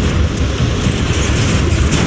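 A laser gun fires with a sharp zap.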